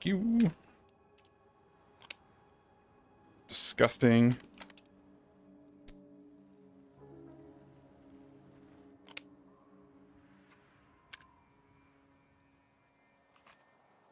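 Gun parts click and snap into place.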